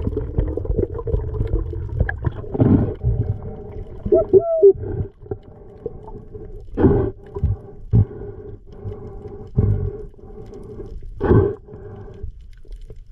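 Water rushes and gurgles in a muffled way underwater.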